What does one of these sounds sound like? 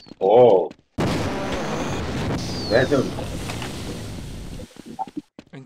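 An energy weapon fires with a loud, crackling hum.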